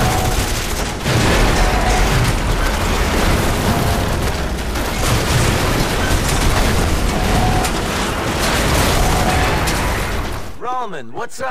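A tall structure crashes down with a loud rumbling collapse.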